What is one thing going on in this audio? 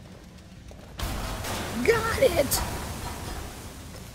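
A magic spell blasts with a loud crackling burst.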